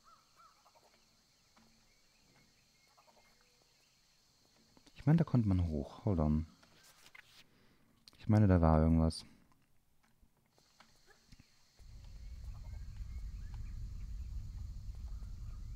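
Footsteps patter softly on a leafy forest floor.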